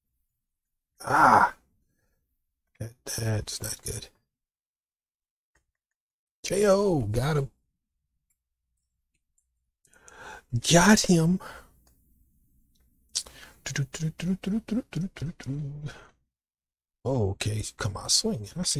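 A man talks through a microphone, in short bursts.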